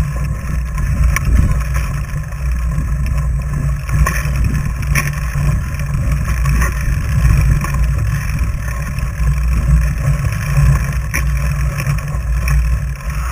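Bike tyres crunch over packed snow.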